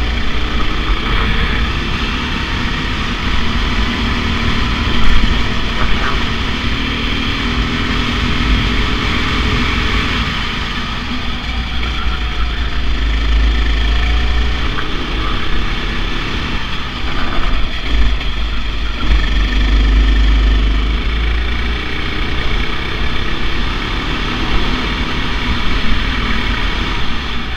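Wind rumbles against the kart as it races.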